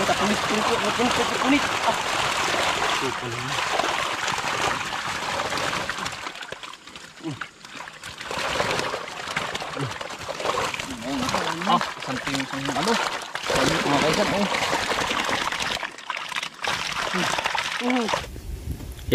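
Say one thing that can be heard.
Men wade and splash through shallow muddy water.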